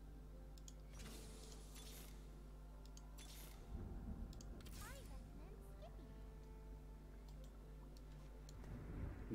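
Short game chimes and clicks sound now and then.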